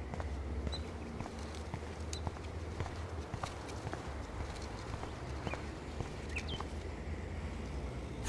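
Footsteps tap on asphalt.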